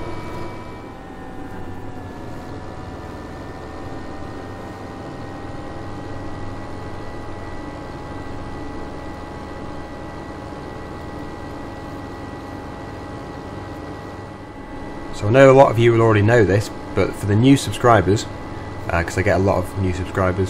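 A tractor engine hums steadily while driving.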